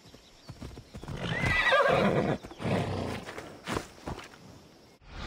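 A horse trots up, its hooves thudding on the dirt.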